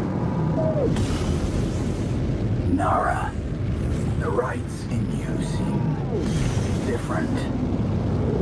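Whooshing sweeps rise and fall as a ship speeds through a tunnel.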